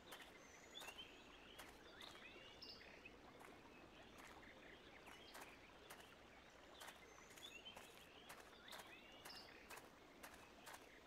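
Water laps gently against a shore.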